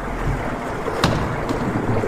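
A door slams shut.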